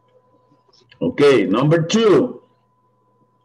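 A man speaks briefly over an online call.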